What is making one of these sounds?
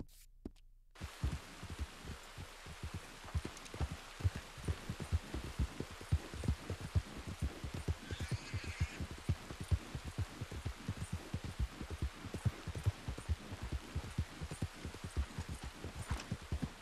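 A horse gallops with quick, heavy hoofbeats on soft ground.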